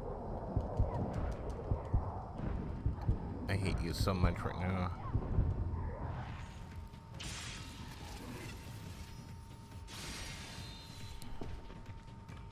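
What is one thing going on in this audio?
Heavy blades clash and strike in combat.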